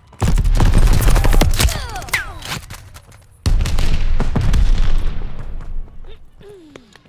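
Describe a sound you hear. Rapid gunfire bangs loudly in bursts.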